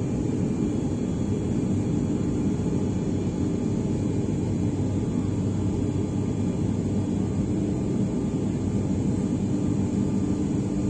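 An aircraft engine drones steadily and loudly inside a cabin.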